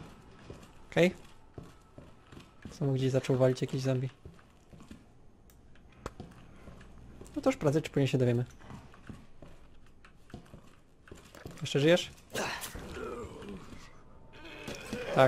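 Footsteps shuffle slowly over a hard floor.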